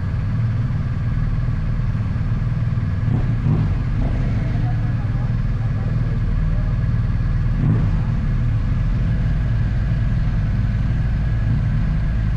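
Another motorcycle rides past nearby.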